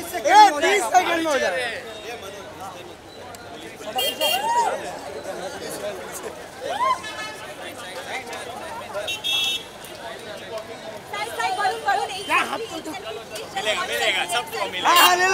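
A crowd of men and women chatters and calls out nearby, outdoors.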